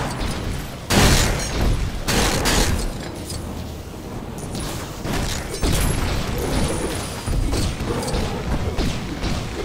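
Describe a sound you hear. Blasts crack and fizz from weapons firing.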